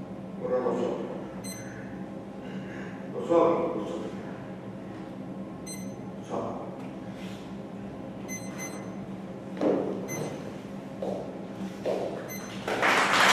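A woman speaks on a stage in a large echoing hall.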